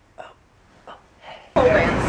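A young woman yawns loudly close by.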